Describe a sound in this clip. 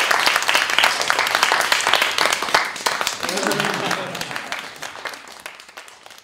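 An audience applauds loudly in a hall, then the clapping slowly fades.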